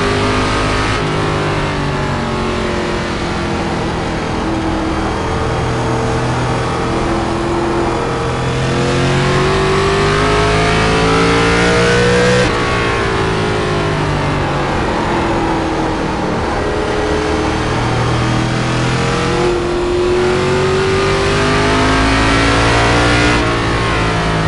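A racing car shifts gears with sudden drops in engine pitch.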